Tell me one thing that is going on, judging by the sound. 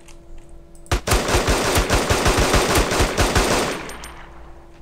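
A helicopter's rotor thuds loudly overhead.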